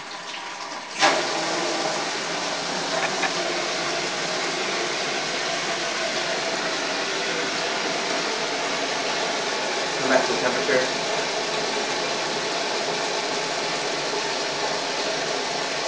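Water bubbles steadily in a container.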